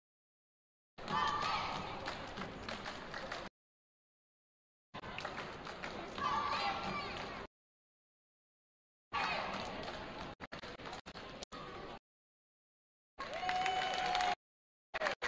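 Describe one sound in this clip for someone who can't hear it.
A group of girls chants a cheer in a large echoing gym.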